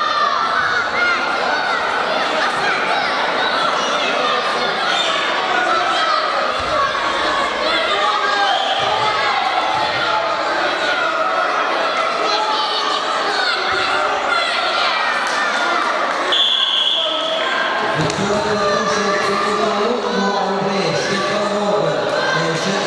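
A crowd of spectators shouts and calls out in an echoing hall.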